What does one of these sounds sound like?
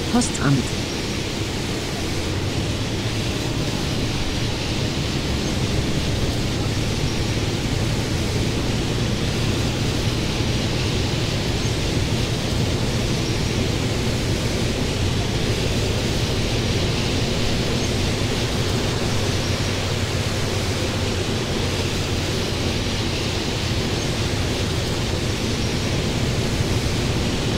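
A bus engine hums steadily as it drives along.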